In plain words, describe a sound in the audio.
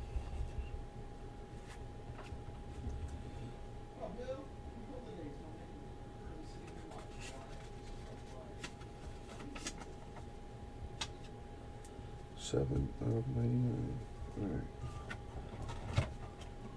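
Paper and cardboard rustle and tap as cards are handled.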